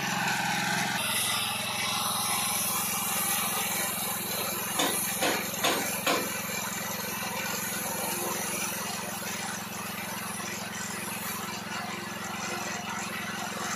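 Compressed air hisses steadily into a tyre.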